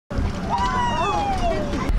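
Water splashes as a dolphin surfaces nearby.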